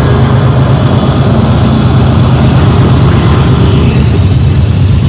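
Diesel locomotives rumble loudly close by.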